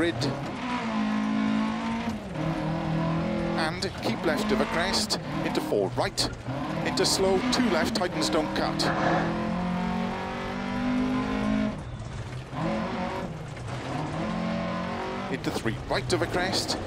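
A rally car engine roars and revs up and down through gear changes.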